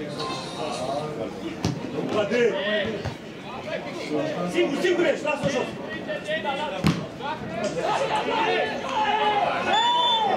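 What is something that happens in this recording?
A football thuds as players kick it on the pitch.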